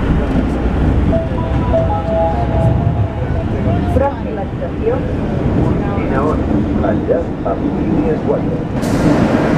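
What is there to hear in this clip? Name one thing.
Passengers talk nearby in a crowded train carriage.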